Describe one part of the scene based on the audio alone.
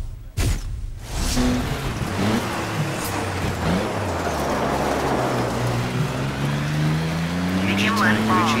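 Tyres crunch and skid on wet gravel.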